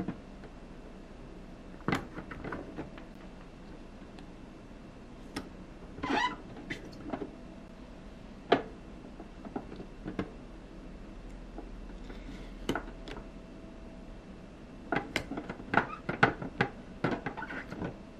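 Fingers rub and tap on a plastic toy as stickers are pressed on.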